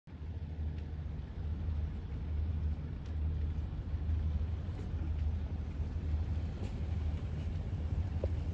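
A boat engine rumbles low and steady nearby.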